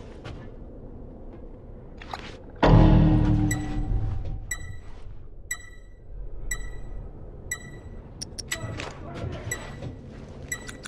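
Heavy footsteps climb metal stairs.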